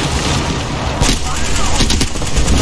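A gun fires in quick sharp shots.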